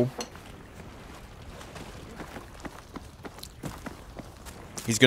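Footsteps crunch steadily over rough ground and dry grass.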